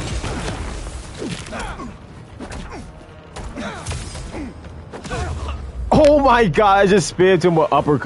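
Punches and kicks thud in a game fight.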